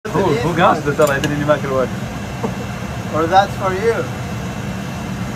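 Metal tongs clink against a baking tray.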